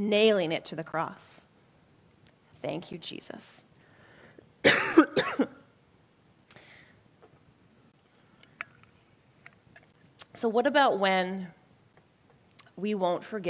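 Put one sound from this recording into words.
A woman speaks with animation through a headset microphone, pausing between phrases.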